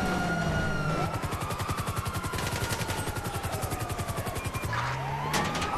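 A helicopter's rotor thuds rapidly overhead.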